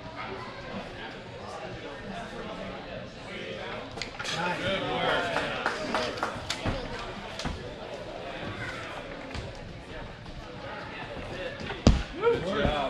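A crowd of onlookers cheers and calls out in a large echoing hall.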